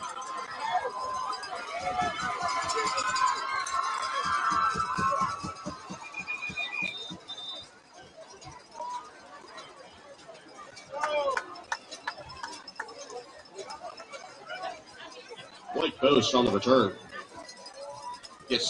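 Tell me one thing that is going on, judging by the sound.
A large crowd cheers and shouts outdoors at a stadium.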